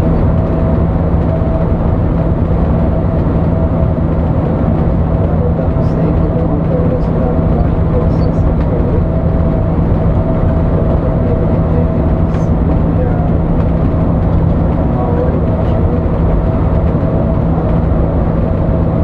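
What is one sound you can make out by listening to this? A bus engine drones steadily from inside the cabin.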